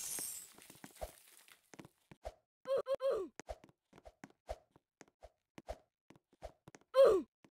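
Short soft game footstep taps come at a steady pace.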